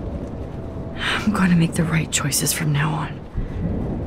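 A young woman speaks softly close by.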